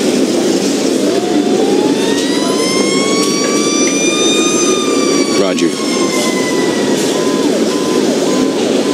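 A siren wails, rising and then slowly falling.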